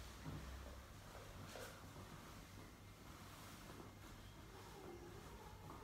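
Cloth rustles as a sheet is smoothed over a bed.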